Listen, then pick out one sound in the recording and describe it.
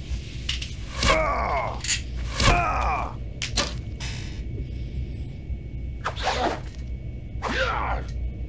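Arrows whoosh through the air in short bursts.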